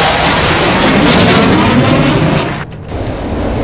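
A twin-engine fighter jet roars past overhead.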